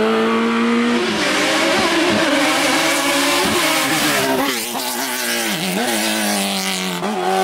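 A racing car engine screams past close by and changes pitch as gears shift.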